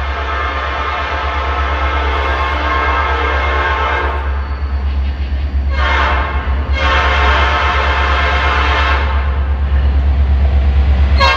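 A train horn blares loudly several times as a train approaches.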